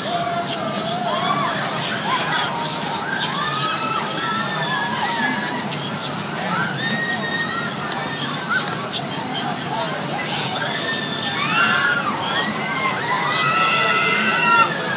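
A fairground ride's machinery whirs and rumbles steadily.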